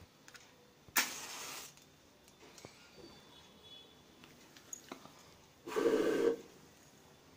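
A flame ignites with a sudden whoosh.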